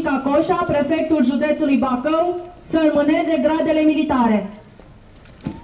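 A young woman reads out loudly through a microphone and loudspeaker.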